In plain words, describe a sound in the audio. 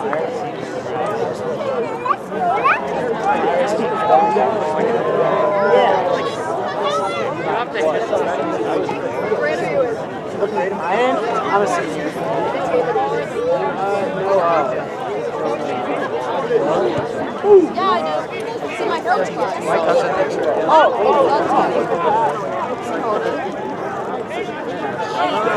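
A crowd of spectators talks and cheers nearby outdoors.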